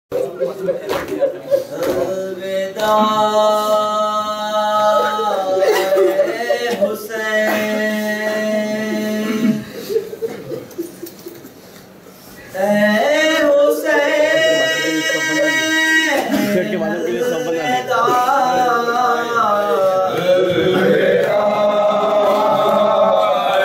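A man chants a mournful melody through a microphone in an echoing hall.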